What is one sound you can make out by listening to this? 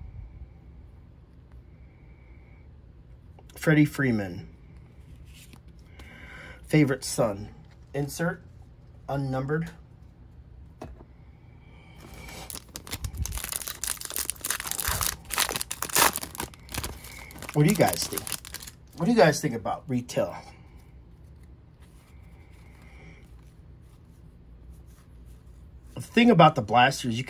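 Trading cards rustle and slide as they are flicked through by hand.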